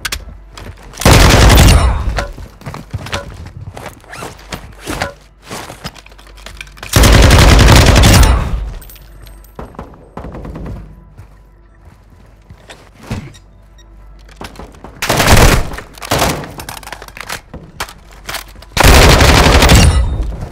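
Automatic gunfire bursts loudly in short rattling volleys.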